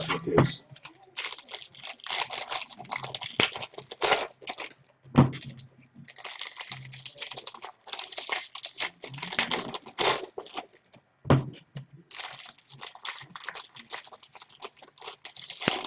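Foil card wrappers crinkle and tear as they are opened.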